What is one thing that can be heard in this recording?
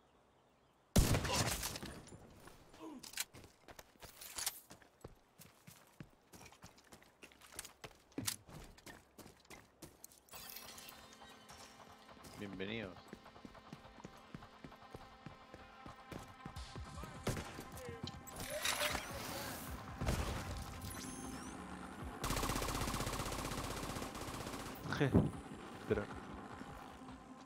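Gunshots crack loudly in bursts.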